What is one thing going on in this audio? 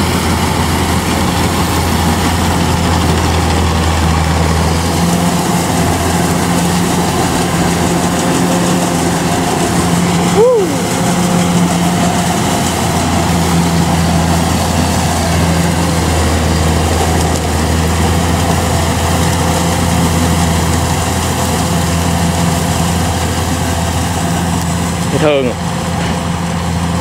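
A harvester engine drones steadily close by.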